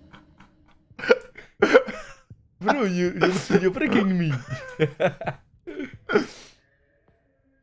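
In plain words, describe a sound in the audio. A second young man laughs close by.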